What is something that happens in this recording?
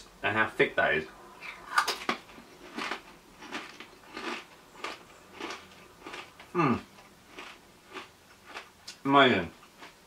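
Crisps crunch loudly as a man chews.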